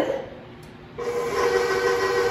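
A stand mixer whirs steadily.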